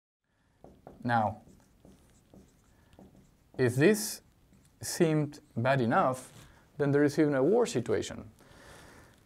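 A middle-aged man speaks calmly and clearly, close to a microphone.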